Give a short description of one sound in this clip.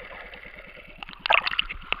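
A swimmer's arm splashes at the surface.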